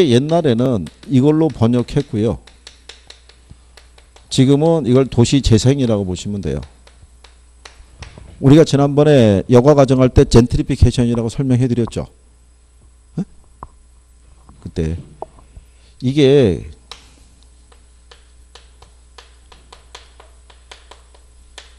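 Chalk taps and scratches on a board.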